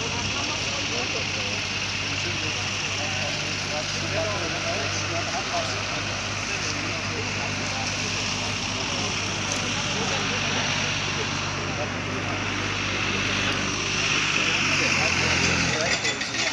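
Men talk nearby outdoors, heard through wind.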